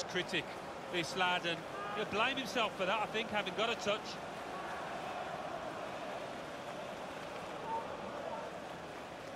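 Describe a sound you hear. A stadium crowd roars and cheers.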